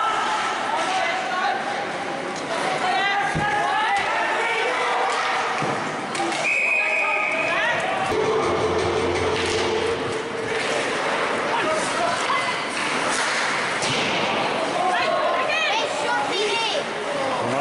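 Spectators talk and call out nearby in an echoing arena.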